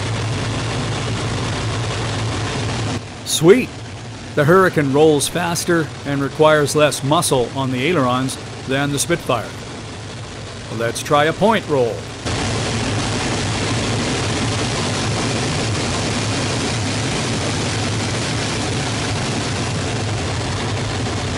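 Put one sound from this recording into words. Wind rushes steadily past.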